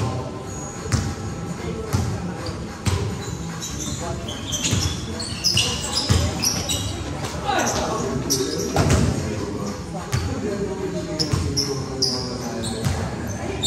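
A basketball bounces on a hard court, thudding in a large echoing hall.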